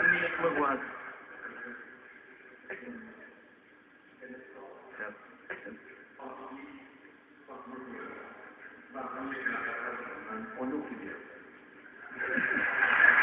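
A man speaks calmly through a microphone, heard over a television speaker.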